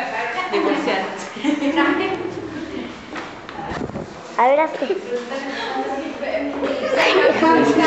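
Several adults chatter and laugh nearby.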